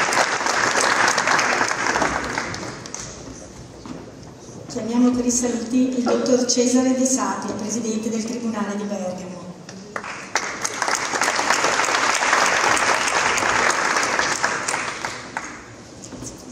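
An audience applauds in a large hall.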